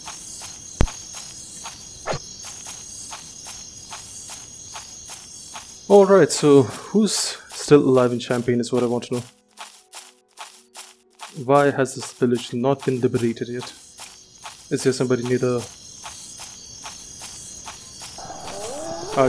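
Footsteps run quickly and steadily over soft ground.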